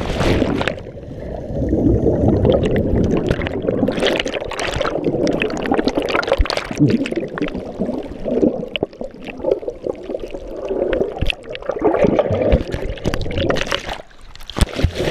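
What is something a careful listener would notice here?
Bubbles rumble and churn underwater.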